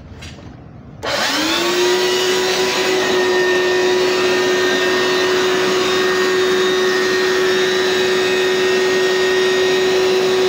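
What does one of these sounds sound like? A vacuum cleaner motor starts up with a rising whine and then runs loudly and steadily.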